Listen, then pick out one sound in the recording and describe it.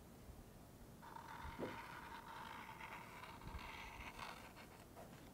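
A felt-tip marker squeaks and scratches across cardboard.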